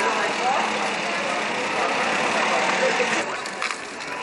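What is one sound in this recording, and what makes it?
An accordion plays a tune in the street.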